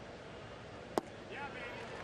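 A baseball smacks sharply once.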